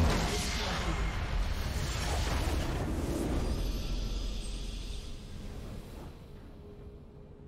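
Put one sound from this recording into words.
A game's fanfare swells triumphantly.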